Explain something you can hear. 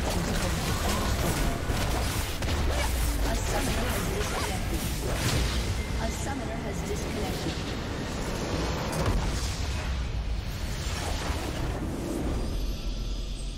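Spell effects crackle and whoosh in a fast, busy battle.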